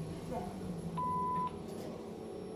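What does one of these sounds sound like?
A lift chime dings.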